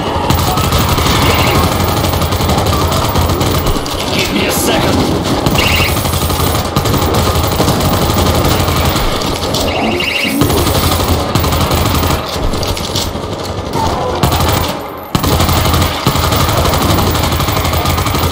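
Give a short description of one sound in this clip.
Rapid gunfire rattles nonstop.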